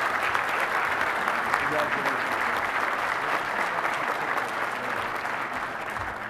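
An audience applauds steadily in a large hall, slowly fading a little.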